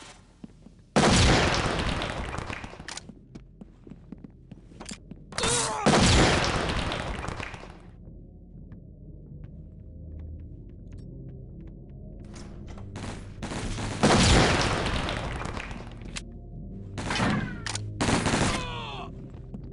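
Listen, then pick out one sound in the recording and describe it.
Stun grenades go off with loud bangs, each followed by a long hissing ring.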